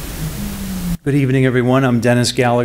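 A man speaks into a microphone in a room with a slight echo.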